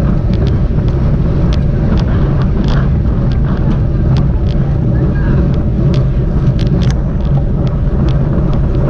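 Wind rumbles loudly and steadily against a moving bicycle.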